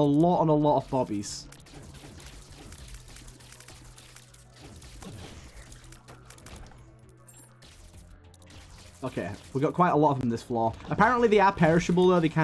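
Small video game shots pop and splat rapidly.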